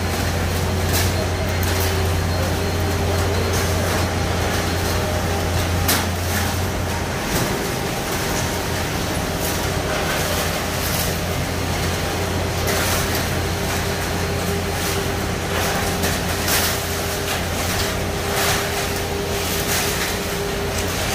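A concrete pump engine drones steadily nearby.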